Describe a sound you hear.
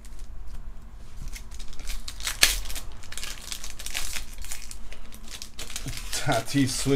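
A foil card pack crinkles and tears as hands open it.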